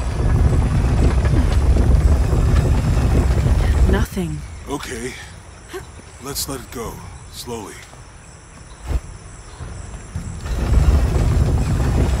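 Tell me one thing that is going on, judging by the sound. A heavy stone wheel grinds and rumbles as it turns.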